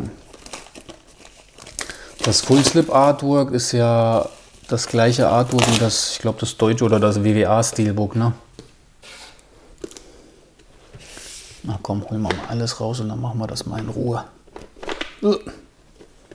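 A cardboard case slides and taps as it is handled.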